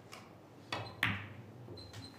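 Two snooker balls knock together with a hard clack.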